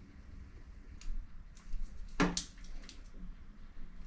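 Small plastic parts click and scrape as they are handled.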